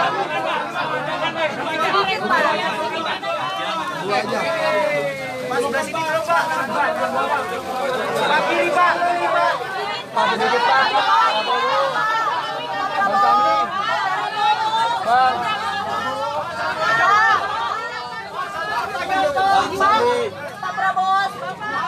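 A crowd of men and women talk and cheer loudly all around, close by.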